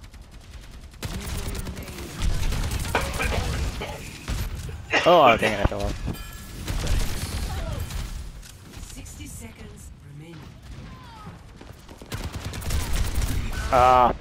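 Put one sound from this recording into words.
Gunfire from a game weapon rattles in rapid bursts.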